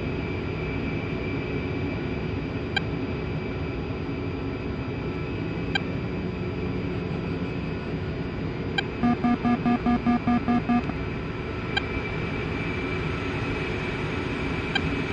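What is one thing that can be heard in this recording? A jet engine idles with a steady low roar.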